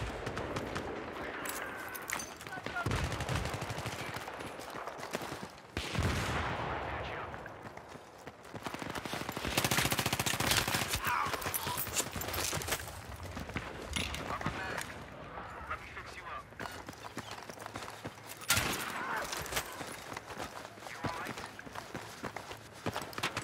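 Gunfire cracks in sharp bursts.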